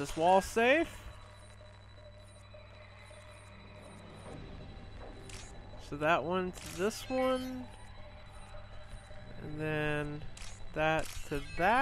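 Electronic chirps and beeps sound in quick bursts from a game.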